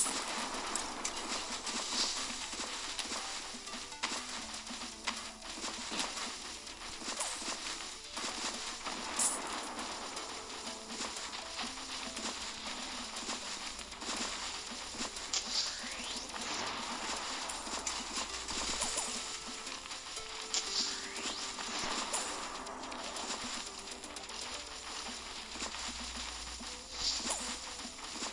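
Cartoon plants fire rapid popping shots.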